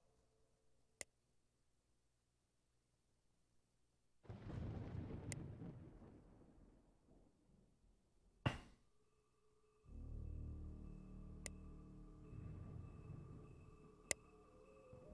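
A soft interface click sounds now and then.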